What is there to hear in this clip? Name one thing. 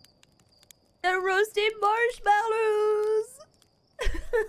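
A young woman wails and cries out loudly into a microphone.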